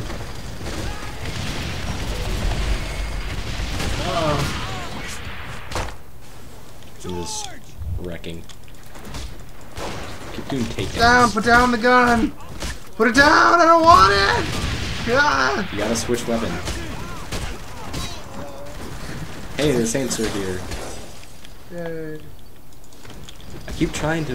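Punches thud in a brawl.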